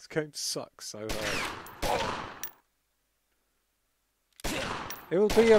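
Gunshots crack with a short echo.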